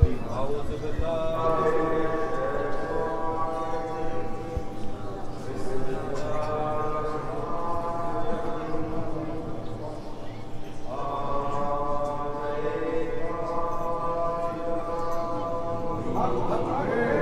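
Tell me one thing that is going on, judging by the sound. Men chant together in long, sustained tones.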